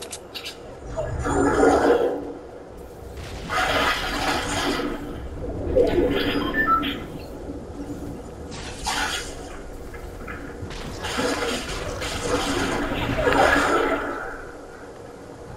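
A stormy wind roars and whooshes in loud gusts.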